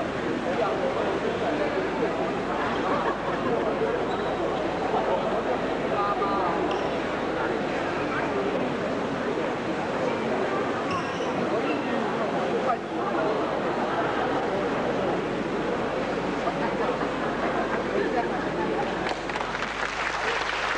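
A seated audience murmurs and chatters in a large hall.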